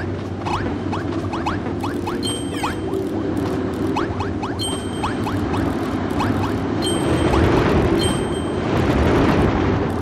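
Rapid zapping and swishing sound effects burst out again and again.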